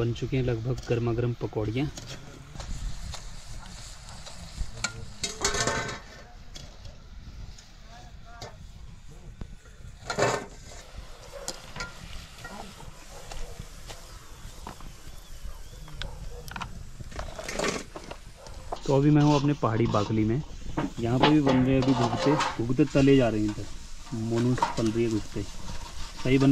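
Hot oil sizzles and bubbles in a pan.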